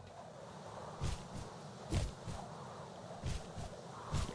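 A small dragon's wings flap with soft, rhythmic whooshes.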